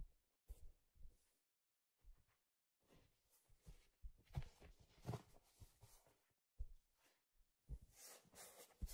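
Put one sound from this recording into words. Hands tap and rub a hard hollow object close to a microphone.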